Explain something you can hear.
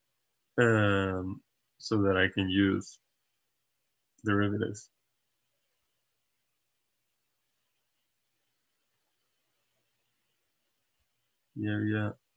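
A young man speaks calmly and closely into a microphone, in short phrases with pauses.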